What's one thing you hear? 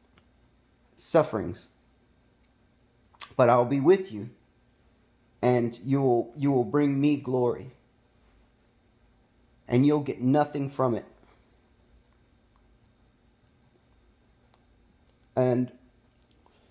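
A man speaks calmly close to the microphone, in short bursts with pauses.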